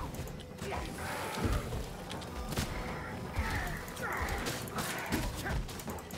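A fireball bursts with a loud roar.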